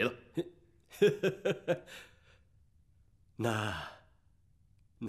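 A middle-aged man laughs and speaks with a chuckle.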